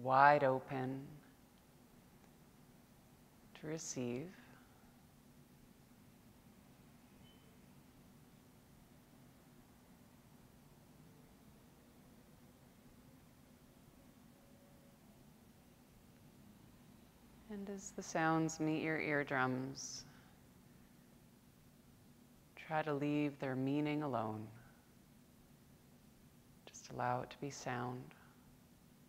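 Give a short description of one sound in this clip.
A woman speaks slowly and calmly, with long pauses.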